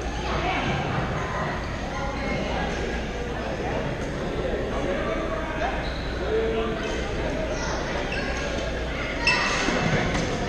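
Shoes squeak on a gym floor.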